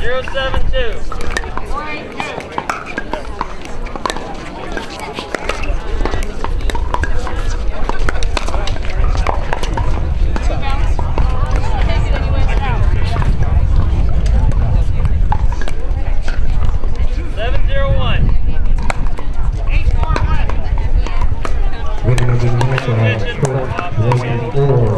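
Paddles strike a plastic ball with sharp pops, back and forth.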